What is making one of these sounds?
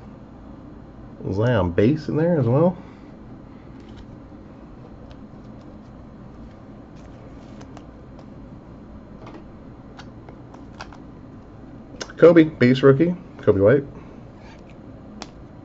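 Foil card packs crinkle and rustle in someone's hands.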